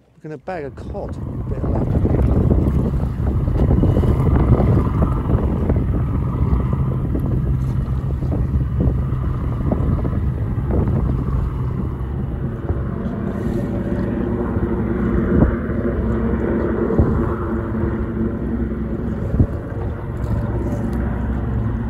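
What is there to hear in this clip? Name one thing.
Wind buffets loudly outdoors on open water.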